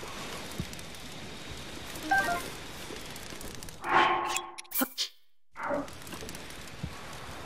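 A small fire crackles.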